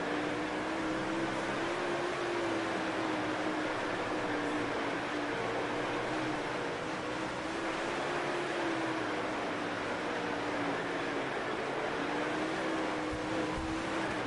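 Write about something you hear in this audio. Tyres spray and hiss over loose dirt.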